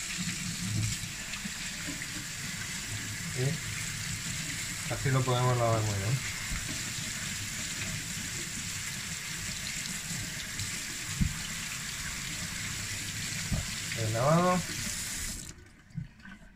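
Water runs steadily from a tap and splashes into a metal sink.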